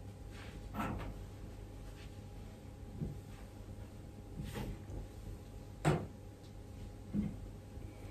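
Dishes and utensils clink and knock now and then.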